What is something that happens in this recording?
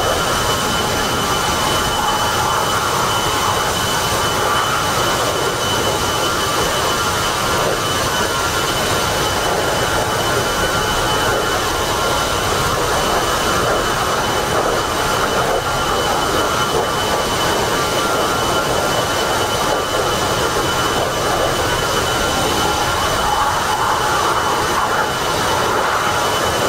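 The twin turbofan engines of an A-10 attack jet whine and roar steadily in flight.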